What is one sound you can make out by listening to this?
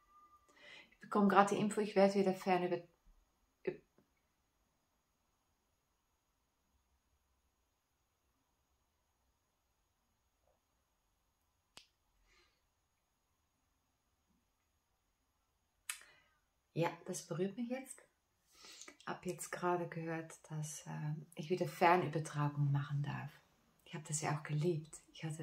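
A woman speaks calmly and warmly into a clip-on microphone, close by, with long pauses.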